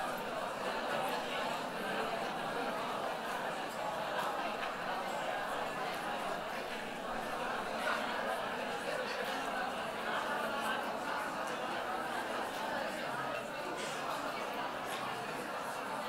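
A woman speaks through a loudspeaker.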